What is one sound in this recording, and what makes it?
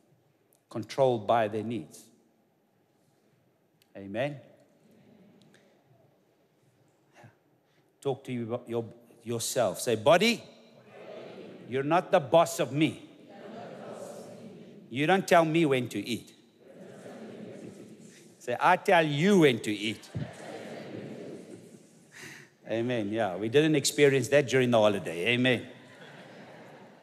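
A man speaks with animation through a microphone, in pauses, in a large echoing hall.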